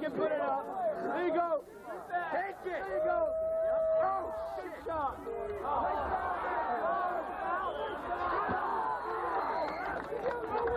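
A crowd of young people chatters and shouts outdoors.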